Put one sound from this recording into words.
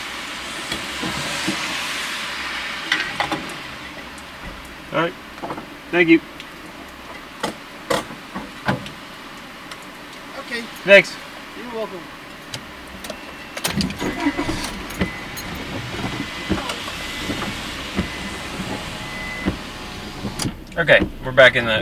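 Rain patters on a car roof and windshield.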